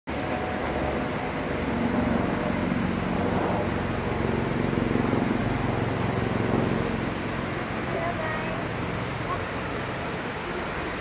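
Footsteps scuff on a stone path.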